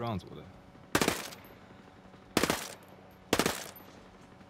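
A gun fires a few loud shots.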